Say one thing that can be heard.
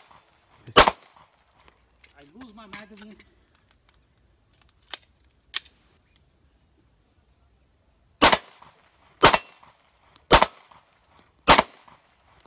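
A handgun fires sharp, loud shots outdoors, one at a time with pauses between them.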